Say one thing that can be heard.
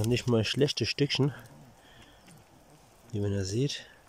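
Dry leaves and pine needles rustle as a hand picks a rock up off the ground.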